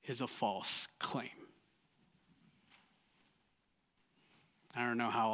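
A man speaks calmly into a microphone, in a room with slight echo.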